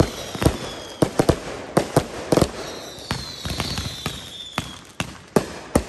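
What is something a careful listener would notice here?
Firework rockets whistle and whoosh as they rise.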